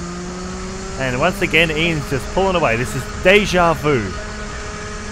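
A kart engine revs up and down sharply.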